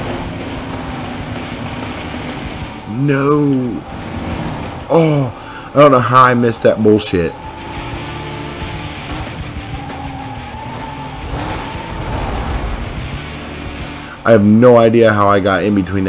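A race car engine roars steadily and revs up and down with each gear change.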